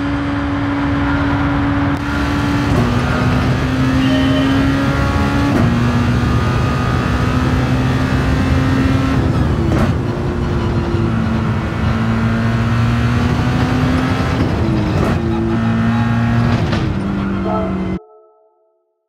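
A racing car engine roars at high revs and shifts through gears.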